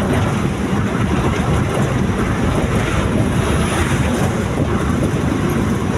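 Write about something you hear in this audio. A large truck rumbles past in the other direction.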